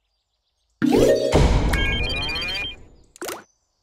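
A cheerful game victory jingle plays with bright chiming tones.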